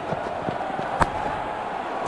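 A cricket bat strikes a ball.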